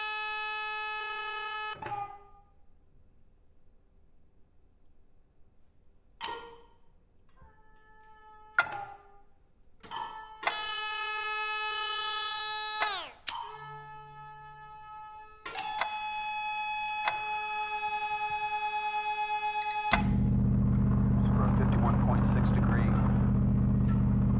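A small ensemble plays long held notes in a hall.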